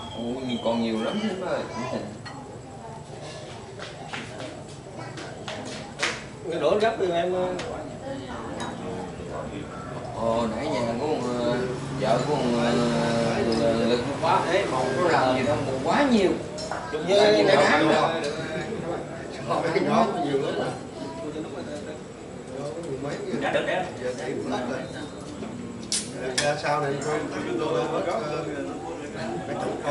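Several men talk and laugh loudly close by.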